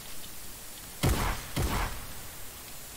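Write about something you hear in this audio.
A gun fires loudly in a video game.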